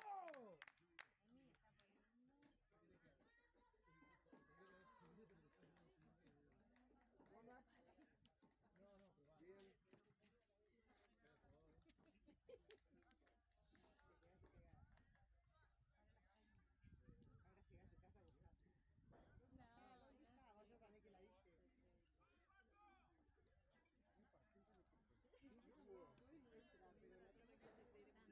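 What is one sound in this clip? A crowd of spectators chatters and calls out at a distance outdoors.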